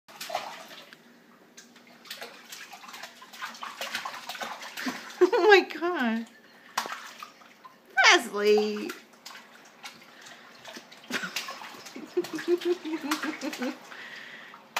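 Water splashes as a baby slaps it with small hands.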